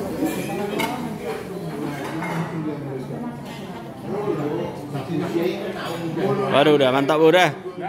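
A spoon scrapes and clinks on a plate.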